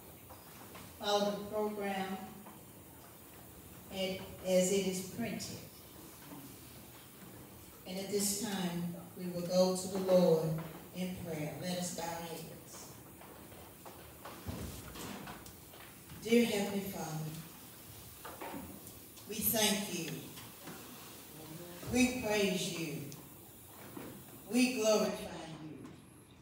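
A woman speaks slowly and solemnly through a microphone in an echoing hall, pausing between phrases.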